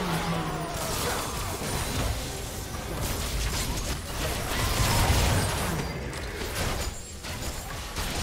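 Game spell effects whoosh, crackle and clash during a fight.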